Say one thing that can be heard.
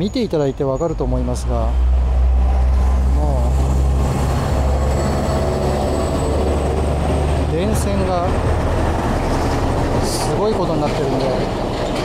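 A heavy truck engine rumbles deeply as trucks drive past on a street.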